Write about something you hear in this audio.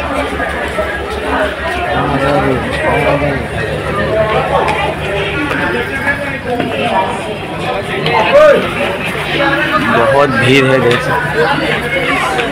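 Footsteps slap on a wet floor.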